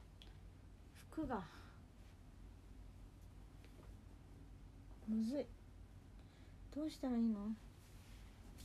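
A young woman close by makes a few short, soft vocal sounds.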